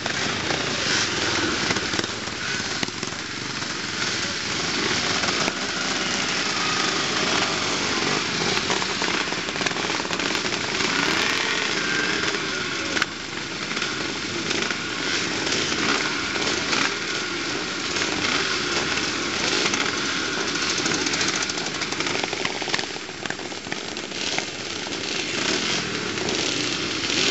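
Motorcycle engines rev and roar close by, outdoors.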